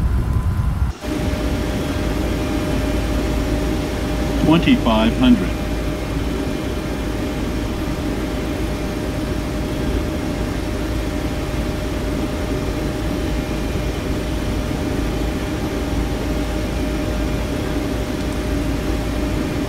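A jet airliner's engines rumble, heard from inside the cockpit.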